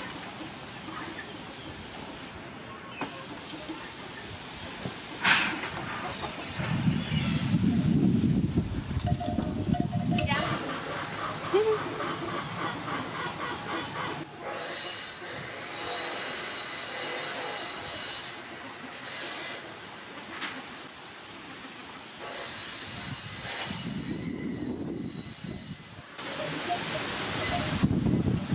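Metal forks clink and scrape against a plate.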